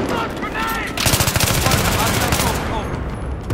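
Rapid rifle gunfire rattles in bursts.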